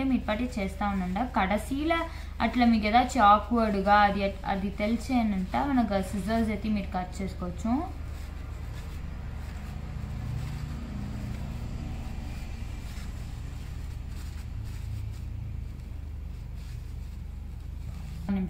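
Tissue paper rustles and crinkles as hands fold it.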